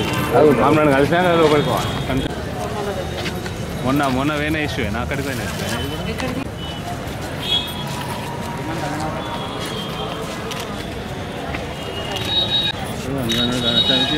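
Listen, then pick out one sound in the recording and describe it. A crowd of women chatters outdoors.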